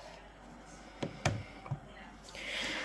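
Small objects knock and click close by.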